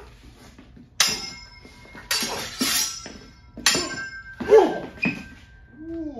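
Steel swords clash and ring sharply several times.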